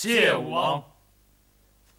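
A man speaks loudly and with emphasis close by.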